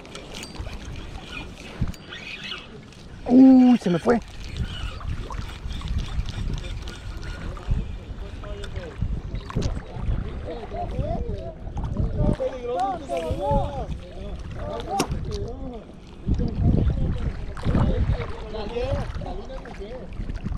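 A fishing reel's handle turns with soft clicking.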